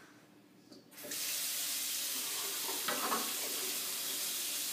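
Tap water pours steadily into a sink.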